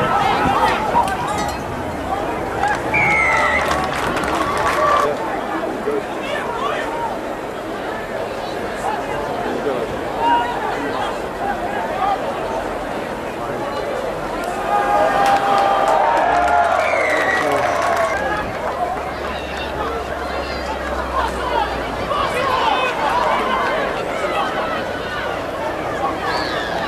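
Players shout to each other on the field.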